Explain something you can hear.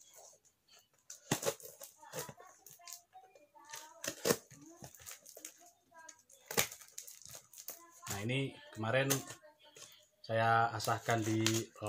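A knife scrapes and cuts through cardboard packaging.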